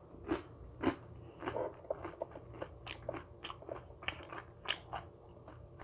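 A woman chews and crunches food close to a microphone.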